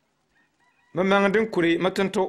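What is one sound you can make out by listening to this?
A man speaks loudly and clearly, close by.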